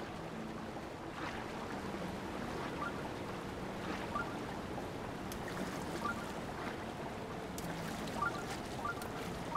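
Water splashes and rushes steadily.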